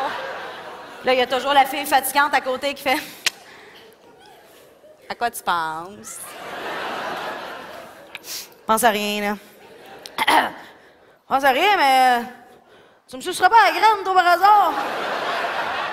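A woman speaks with animation into a microphone on a stage.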